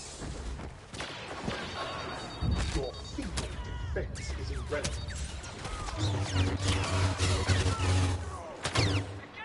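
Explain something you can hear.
Laser blasts crackle and zap in a battle.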